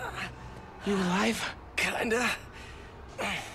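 A young man asks a question close by.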